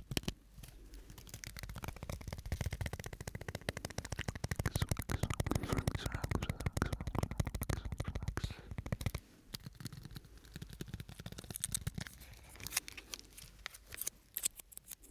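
Plastic crinkles and rustles close to a microphone.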